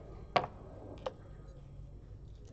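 A game clock button clicks.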